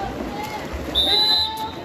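A referee blows a whistle.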